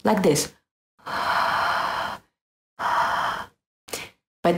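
A young woman blows hard into her cupped hands.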